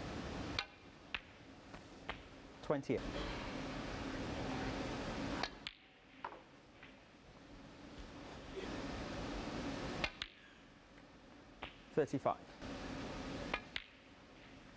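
Snooker balls click against each other.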